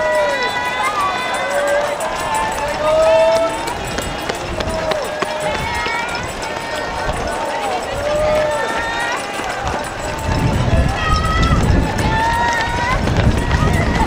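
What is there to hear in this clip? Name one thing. A crowd of spectators cheers and calls out nearby.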